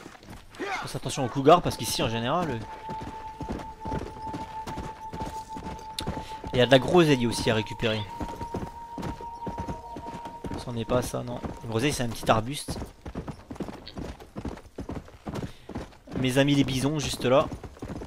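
A horse gallops with quick, heavy hoofbeats on dry ground.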